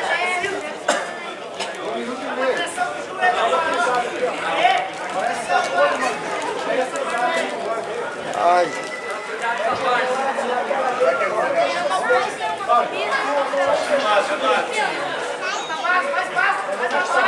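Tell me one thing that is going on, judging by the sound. Many voices of young people shout and chatter in a large echoing hall.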